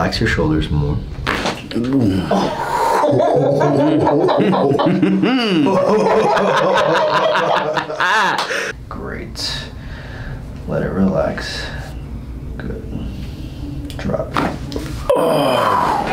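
A neck joint cracks sharply.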